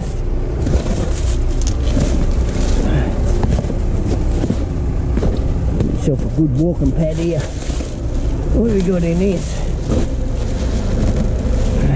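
Cardboard scrapes and thumps as it is moved.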